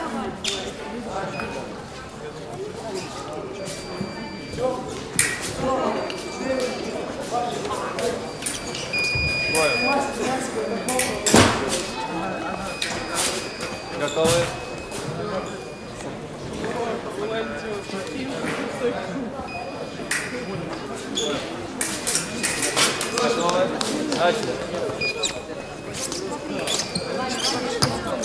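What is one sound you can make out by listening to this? Fencing blades clash and click sharply.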